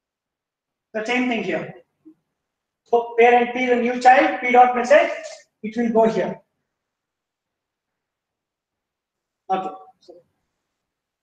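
A man lectures calmly into a microphone, in short bursts with pauses.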